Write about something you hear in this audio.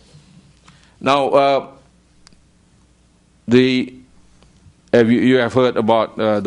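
A middle-aged man speaks calmly into a microphone in short bursts.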